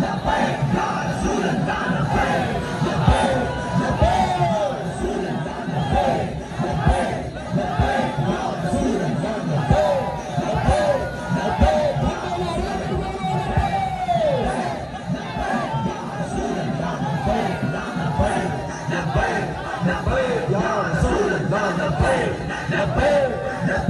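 A large outdoor crowd chants and cheers loudly.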